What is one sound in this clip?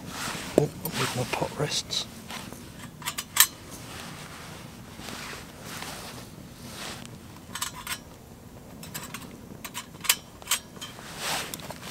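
A small stove flame hisses softly.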